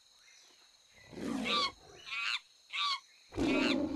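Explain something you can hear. An ape screams and hoots loudly in bursts.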